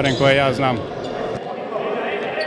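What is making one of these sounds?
An older man speaks calmly into a microphone.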